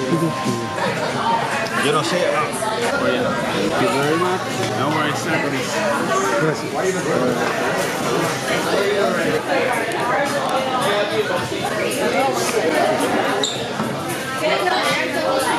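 A crowd of people chatters loudly all around in a busy room.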